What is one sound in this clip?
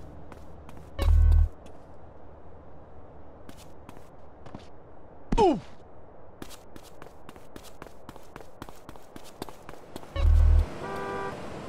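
A heavy thud sounds as a man lands from a jump.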